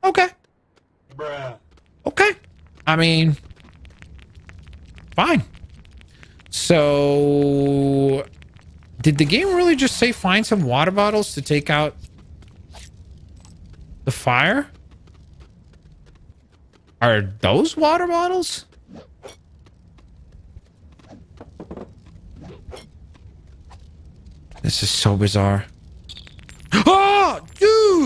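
A man talks with animation into a microphone, in bursts with pauses.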